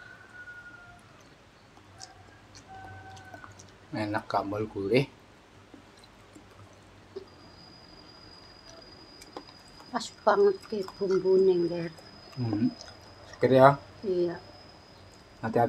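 A man chews and smacks his lips while eating.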